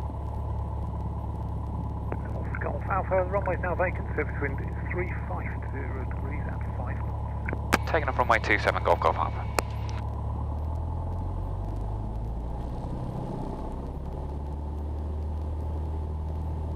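A small plane's propeller engine drones steadily throughout.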